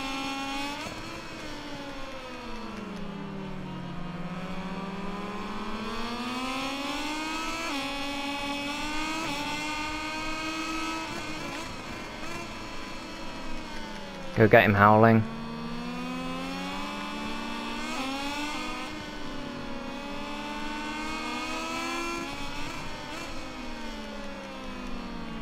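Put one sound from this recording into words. A motorcycle engine whines loudly, its pitch rising and falling as it speeds up and slows down through turns.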